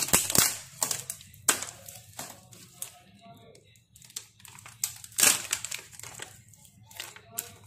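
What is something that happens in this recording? Foil sheeting crinkles under gloved hands.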